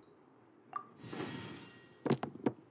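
A sparkling magical shimmer swells.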